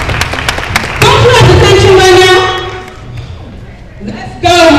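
A young man sings loudly in an echoing hall.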